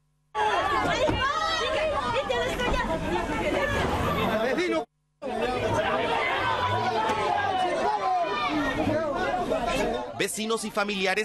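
A crowd of men and women shouts angrily close by.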